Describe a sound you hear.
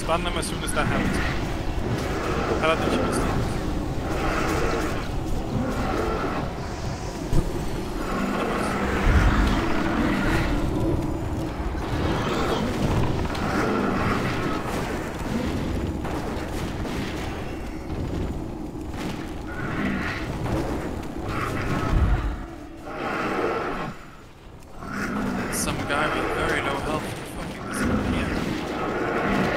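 Spell effects crackle and blast during a game battle.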